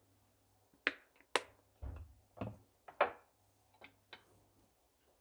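Bottles and jars clink and knock on a countertop.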